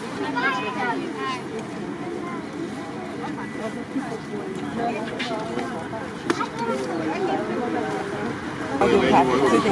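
A woman talks nearby in a lively way, outdoors.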